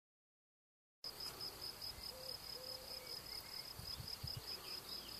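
Wind blows outdoors, rustling through tall grass.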